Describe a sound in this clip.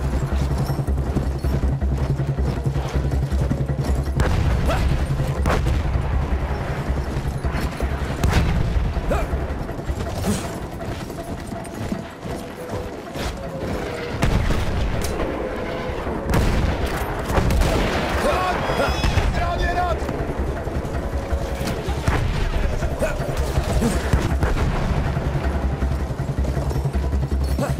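Gunshots crack sharply now and then.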